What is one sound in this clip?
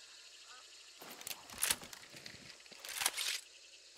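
A rifle rattles and clicks as it is handled.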